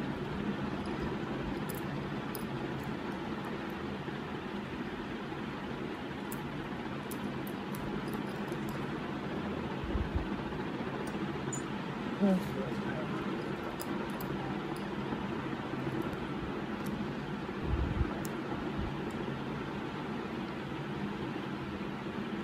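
Metal jewelry clicks and clinks softly in handling.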